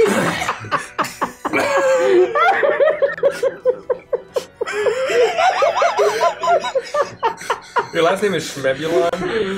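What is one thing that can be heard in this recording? Several men and women laugh loudly together over microphones.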